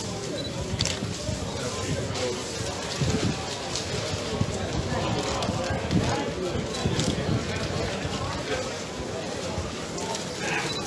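A crowd of men and women talks and shouts close by outdoors.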